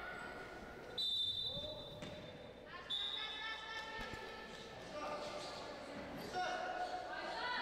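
Sneakers squeak sharply on a hardwood court in an echoing hall.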